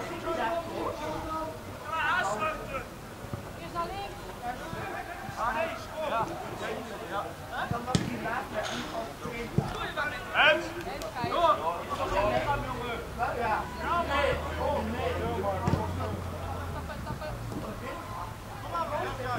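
Players shout and call to each other across an open outdoor field.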